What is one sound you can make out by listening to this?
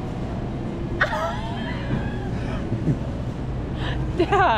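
A young woman laughs loudly and heartily close by.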